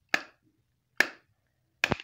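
A glass bottle knocks against a hard surface.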